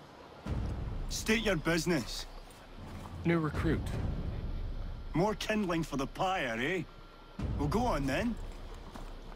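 A man speaks sternly nearby.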